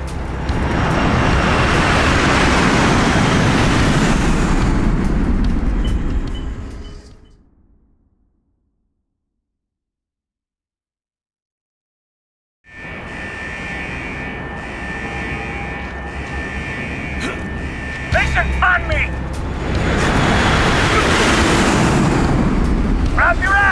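A strong wind roars and howls steadily.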